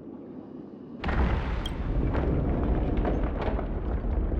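A huge stone door grinds and rumbles open.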